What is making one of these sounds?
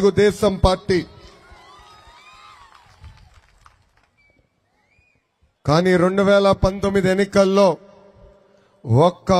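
A young man speaks with animation into a microphone over loudspeakers.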